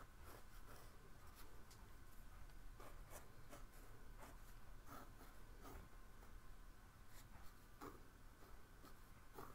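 A pencil scratches softly across paper in short strokes.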